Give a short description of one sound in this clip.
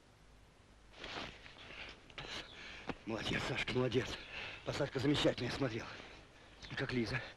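A man speaks with strong emotion, close by.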